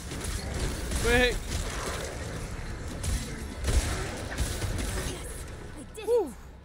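Game combat sounds clash and thud.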